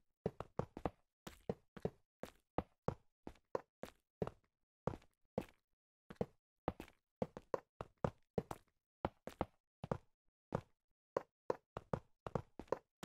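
Video game footsteps tread on stone.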